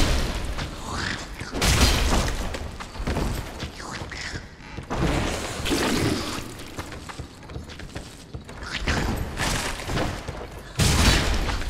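A creature lets out a harsh shriek.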